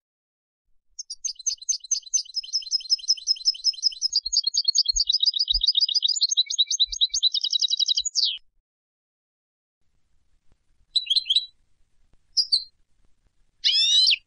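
A small songbird sings a rapid, twittering song in bursts, close by.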